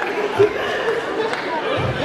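A young woman laughs through a microphone.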